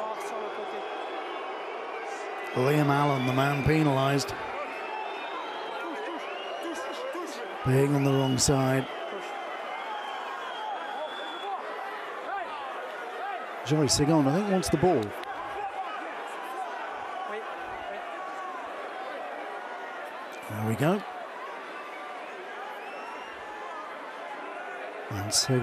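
A large crowd murmurs and cheers steadily in an open stadium.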